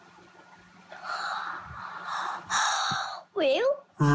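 A young girl breathes out heavily in long huffs.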